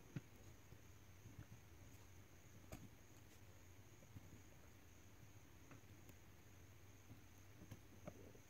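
Small metal wire leads click faintly as they are pressed into a plastic board.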